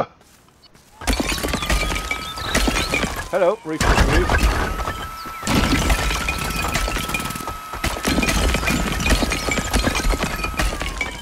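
A power hammer pounds rapidly, breaking apart roof tiles.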